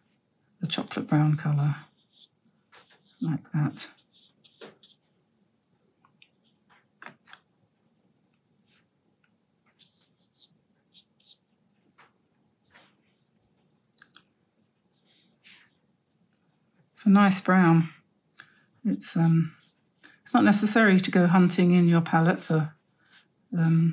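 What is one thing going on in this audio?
A paintbrush swishes softly across paper.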